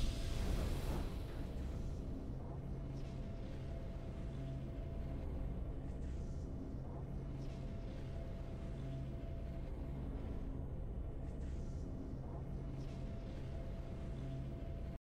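Triumphant game music plays softly.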